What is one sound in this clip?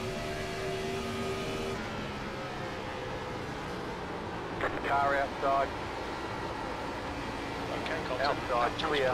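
A race car engine roars steadily at high speed.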